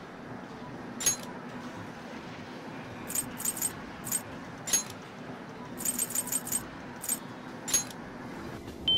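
Soft menu clicks chime repeatedly.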